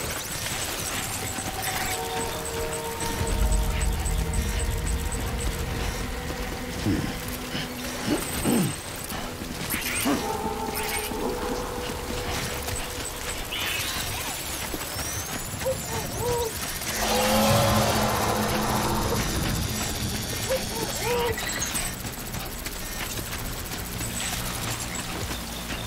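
Footsteps crunch over rubble and gravel.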